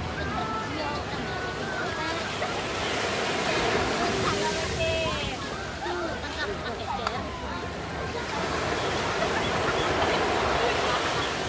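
Small waves break and wash up on a sandy shore.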